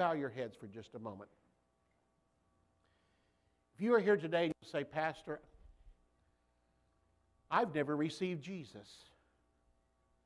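A middle-aged man speaks with animation through a microphone in a large room, pausing between phrases.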